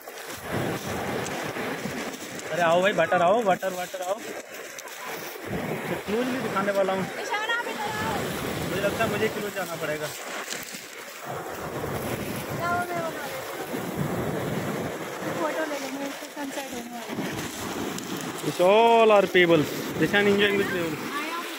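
Waves wash over a pebble beach.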